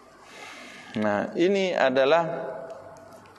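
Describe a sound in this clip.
A middle-aged man chants in a drawn-out voice into a microphone, with a slight echo.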